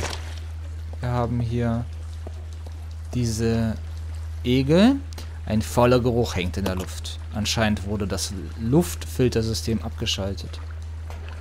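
A young man speaks calmly to himself, close by.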